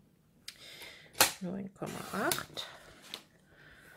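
A paper trimmer's blade slides along and slices through paper.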